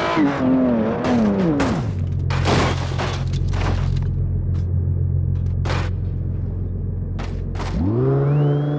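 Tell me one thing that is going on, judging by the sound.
Metal and body panels crash and scrape as a car rolls over.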